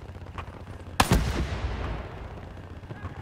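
A pistol fires a single loud shot that echoes and fades.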